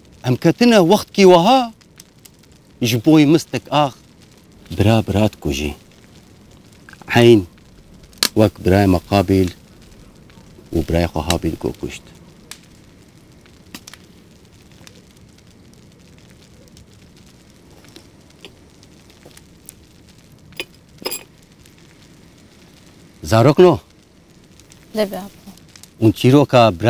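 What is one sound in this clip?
A middle-aged man speaks calmly nearby, with pauses.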